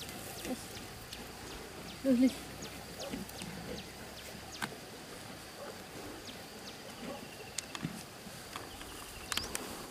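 A rope rustles and scrapes softly.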